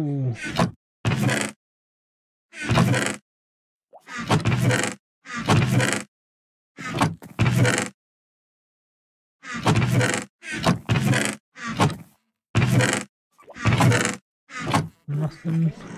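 A wooden chest lid creaks open and thumps shut, again and again.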